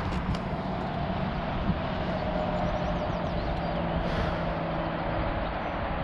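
A small engine idles with a steady drone close by.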